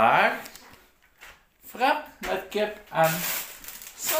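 Plastic packaging crinkles as a man handles food bags.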